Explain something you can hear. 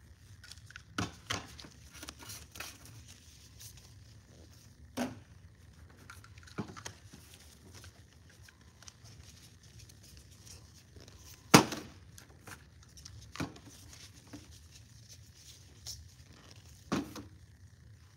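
Plastic bottles knock and clatter as they are handled.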